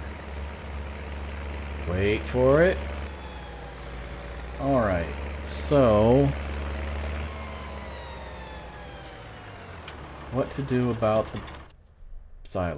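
A diesel tractor engine drones as the tractor drives along.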